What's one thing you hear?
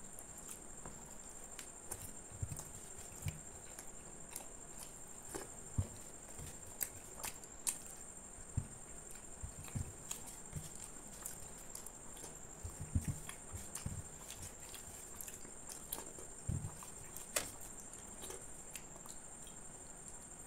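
A man chews food noisily with his mouth open, close by.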